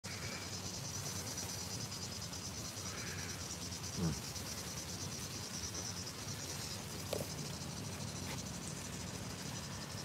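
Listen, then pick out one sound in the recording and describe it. A river rushes steadily in the distance.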